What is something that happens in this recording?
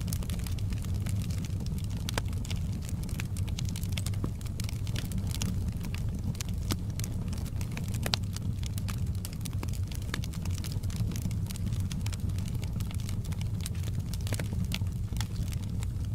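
Logs crackle and pop in a burning fire.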